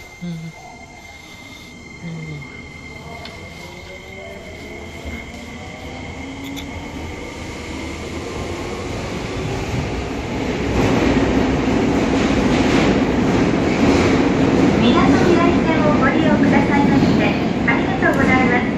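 The wheels of an electric subway train rumble on the rails, growing louder as it speeds up.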